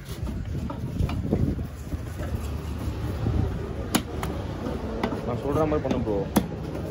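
A knife blade knocks against a wooden chopping block.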